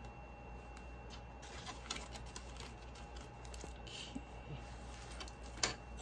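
Pages of a booklet flip and rustle.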